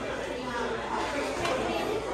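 Shoppers chatter quietly in the background.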